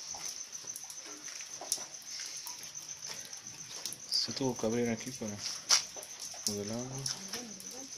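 Water trickles and gurgles steadily into a drain.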